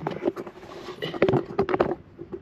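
A cordless impact wrench rattles in short bursts.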